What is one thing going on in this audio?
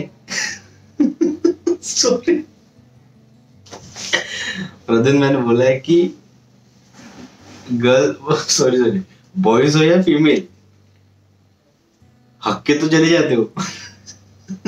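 A young man laughs heartily.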